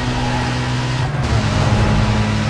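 A racing car engine briefly drops in pitch as it shifts gear, then climbs again.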